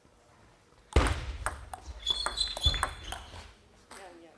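A ping-pong ball clicks quickly back and forth off paddles and a table in an echoing hall.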